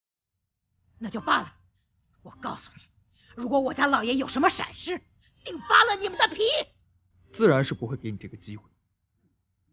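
A middle-aged woman speaks sternly and threateningly, close by.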